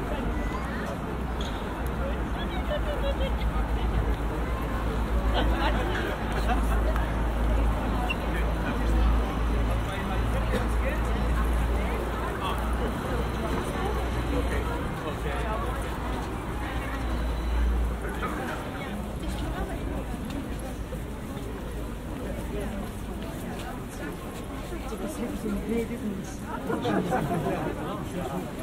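Footsteps shuffle on paving stones.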